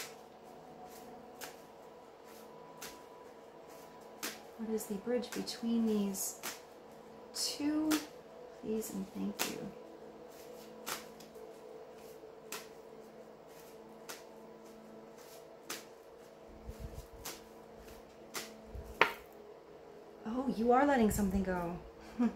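Cards shuffle and flick in a woman's hands.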